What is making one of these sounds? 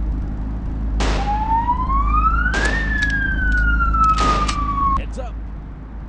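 A police siren wails and glides up and down.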